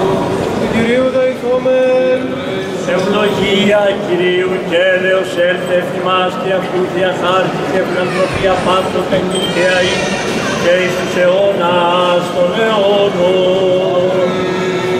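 An elderly man chants alone, his voice echoing through a large hall.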